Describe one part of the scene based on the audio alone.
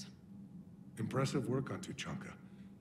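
A man speaks in a deep, calm voice.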